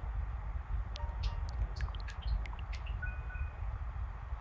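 Short electronic menu blips sound one after another.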